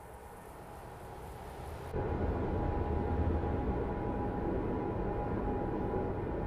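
Tyres hum on a road surface.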